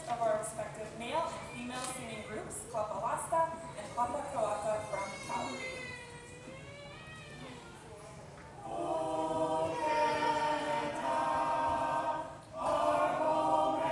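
A group of women sing together in harmony in an echoing hall.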